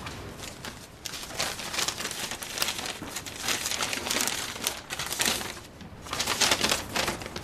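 Paper rustles and crinkles in a woman's hands.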